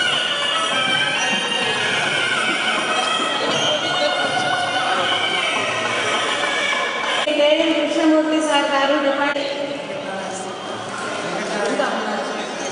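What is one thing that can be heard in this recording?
Several women chat and laugh together nearby.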